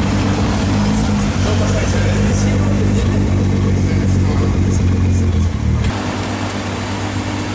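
A sports car engine idles with a deep, loud rumble from the exhaust.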